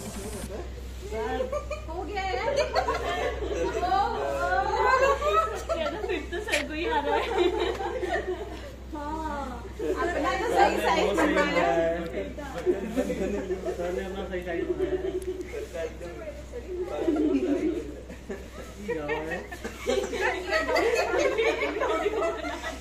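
Young men and women talk and joke with animation close by.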